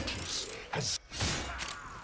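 Fiery blasts burst and crackle.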